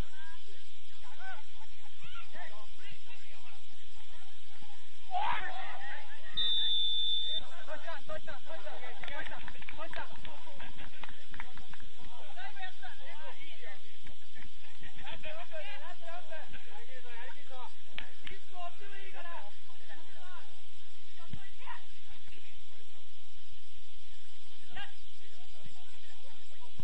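Young players shout to each other outdoors across a wide open field.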